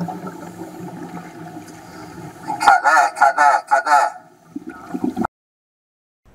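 Bubbles rush and gurgle underwater.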